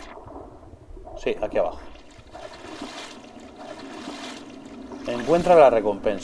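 Water splashes and sloshes as a swimmer strokes through it.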